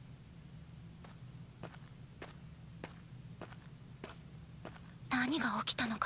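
Footsteps tap lightly on a stone floor.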